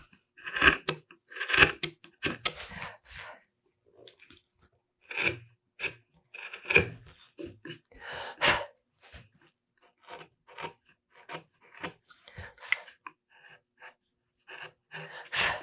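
A chisel cuts and scrapes wood in short strokes.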